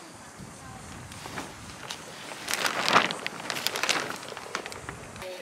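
Plastic sheeting rustles and flaps.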